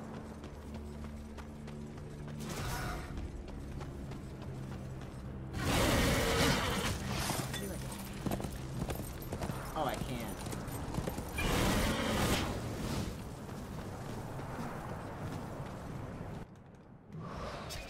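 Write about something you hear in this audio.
A young man talks into a headset microphone.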